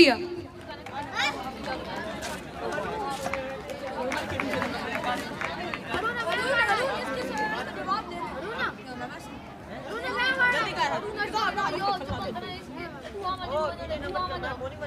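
A young boy speaks calmly into a microphone, close by.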